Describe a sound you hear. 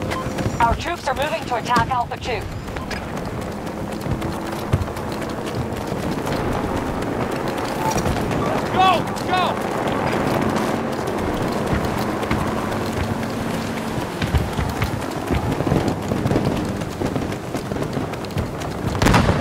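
Footsteps run quickly on wet ground.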